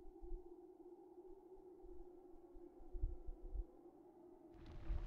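Eerie game music hums steadily.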